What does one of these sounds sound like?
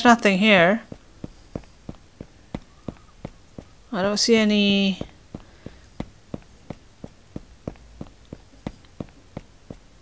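Footsteps tap at a steady walking pace.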